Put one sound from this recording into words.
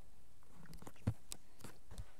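A stone block is placed with a short knock.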